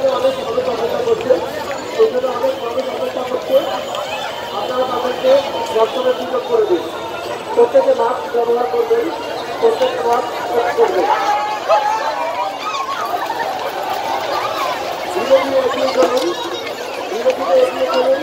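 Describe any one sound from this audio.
A large crowd talks and shouts loudly outdoors.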